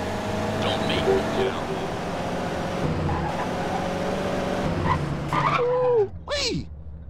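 A car engine runs as a sedan drives along a road.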